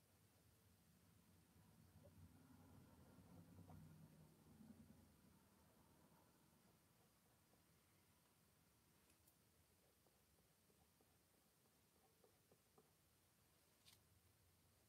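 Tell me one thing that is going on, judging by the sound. A small brush dabs and strokes softly on a surface.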